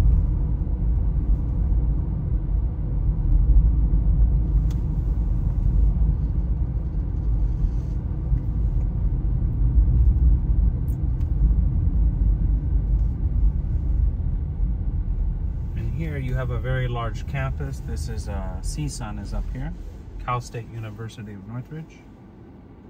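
A car's engine and tyres rumble low and steady from inside the car.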